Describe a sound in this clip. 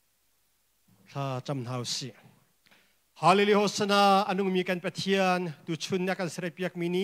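Another man speaks loudly and with emphasis through a microphone.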